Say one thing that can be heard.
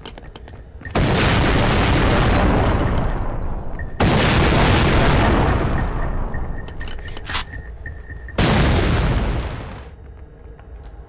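Loud explosions boom and rumble away, one after another.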